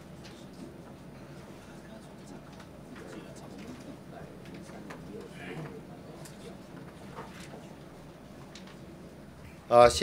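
A middle-aged man reads out calmly through a microphone.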